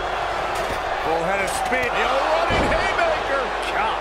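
A body slams heavily onto a wrestling ring mat.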